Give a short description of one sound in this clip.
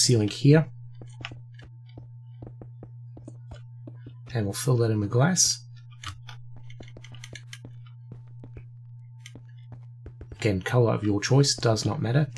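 Blocks click softly as they are placed one after another.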